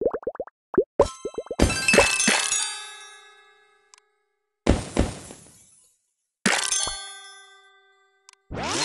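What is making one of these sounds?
A bright chiming jingle rings out in bursts, each fading away.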